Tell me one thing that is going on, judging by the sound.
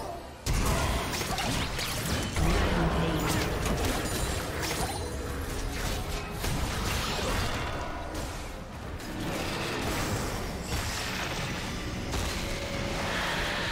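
Magic blasts and impacts crackle and boom in a fast video game battle.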